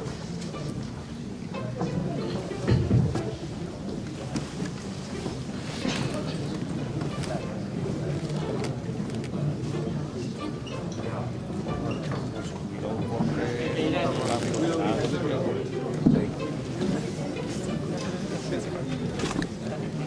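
A man speaks into a microphone through loudspeakers in a large echoing hall.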